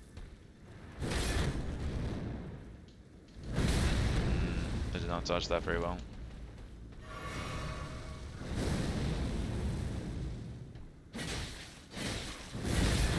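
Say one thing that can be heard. Heavy thuds and crashes of a fight ring out.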